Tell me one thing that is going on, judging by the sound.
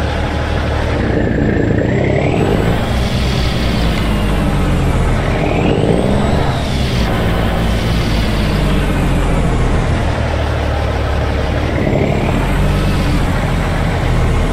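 A truck engine revs up and down as the truck manoeuvres.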